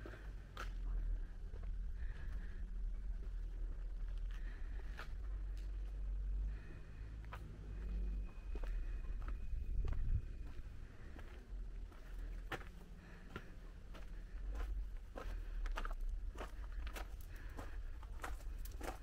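Footsteps crunch on a dirt path.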